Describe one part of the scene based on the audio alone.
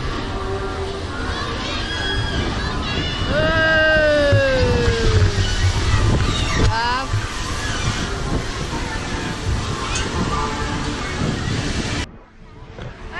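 A woman laughs and chatters close by.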